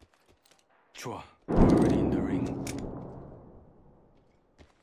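A gun is picked up with a metallic clack and rattle.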